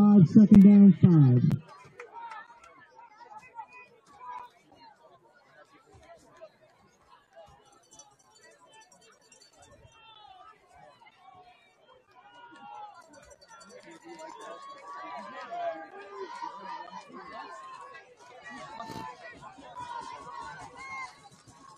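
A crowd of spectators chatters and cheers in the distance outdoors.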